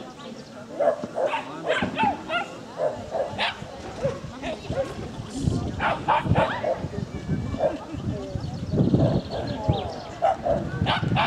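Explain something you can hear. A woman calls out eagerly to a dog, close by outdoors.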